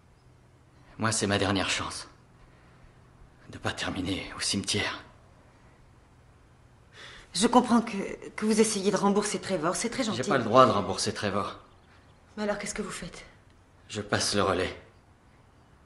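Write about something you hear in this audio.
A man speaks close by in a strained, emotional voice.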